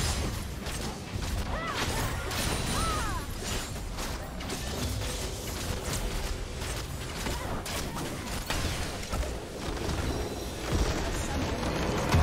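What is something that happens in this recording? Game spells crackle and clash in a busy fight.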